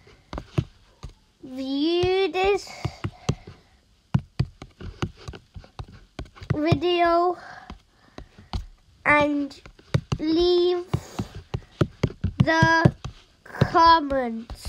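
Keyboard taps click quickly and irregularly.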